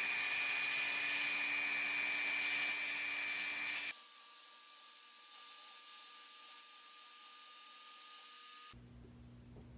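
A small rotary tool whines as it grinds against metal.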